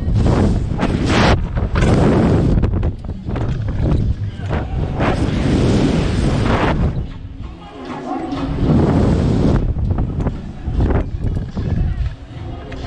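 Wind rushes loudly past close by.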